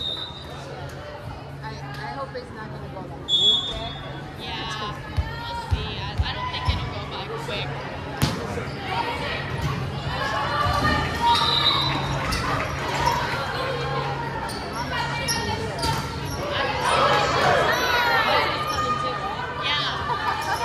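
Shoes squeak sharply on the hardwood floor.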